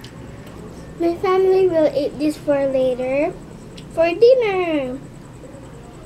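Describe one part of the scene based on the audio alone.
A young girl speaks with animation close to a microphone.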